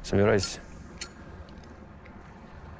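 A lighter clicks and sparks.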